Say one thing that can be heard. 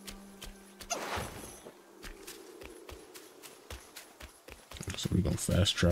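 Footsteps patter quickly over stone and grass.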